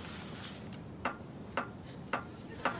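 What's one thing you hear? A hammer taps lightly on metal.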